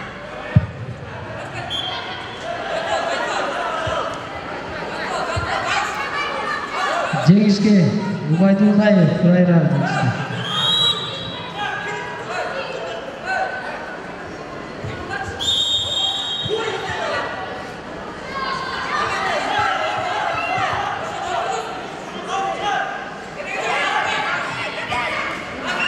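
A crowd of children and adults chatters and calls out in a large echoing hall.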